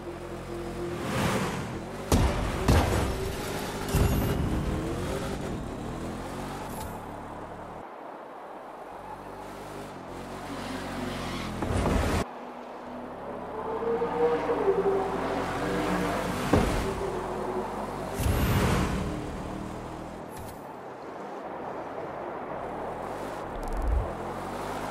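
A racing car engine roars and revs at high speed.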